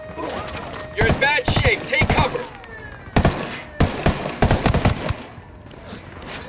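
A rifle fires loud shots in quick bursts.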